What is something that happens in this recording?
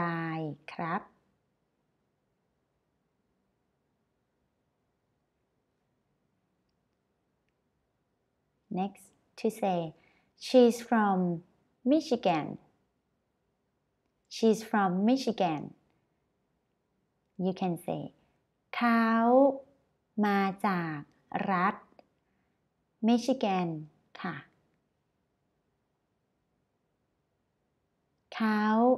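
A young woman speaks clearly and slowly into a close microphone, with long pauses.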